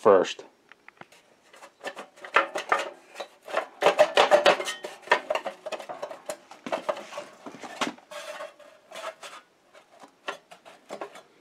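Metal parts rattle and clank as an engine is handled.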